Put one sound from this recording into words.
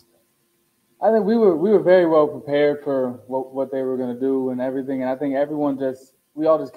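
A young man speaks clearly into a microphone.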